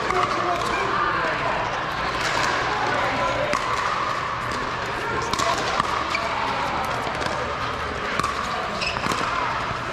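Players' shoes squeak on the court.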